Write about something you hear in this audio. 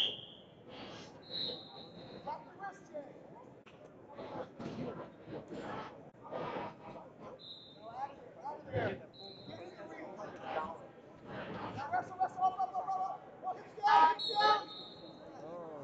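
A referee blows short whistle blasts.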